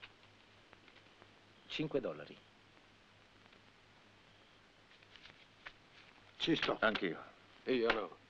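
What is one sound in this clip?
Paper cards and banknotes rustle softly.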